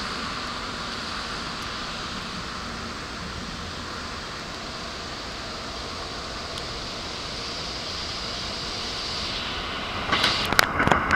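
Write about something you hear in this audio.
Trains rumble slowly along the tracks at a distance.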